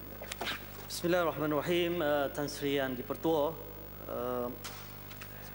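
A man speaks into a microphone in a large echoing hall.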